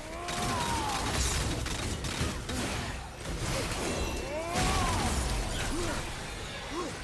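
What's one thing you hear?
Weapons clash and thud in a fast fight.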